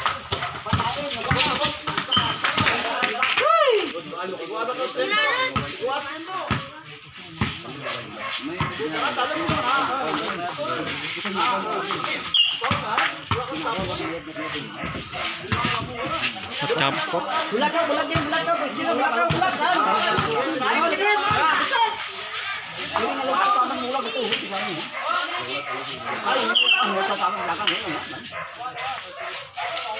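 A crowd of young men and boys shouts and chatters outdoors.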